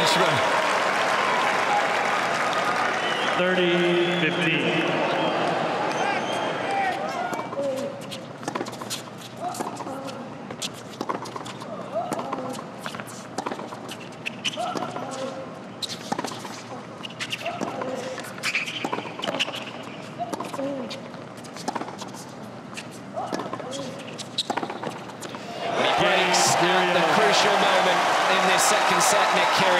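A crowd cheers and applauds loudly in a large open arena.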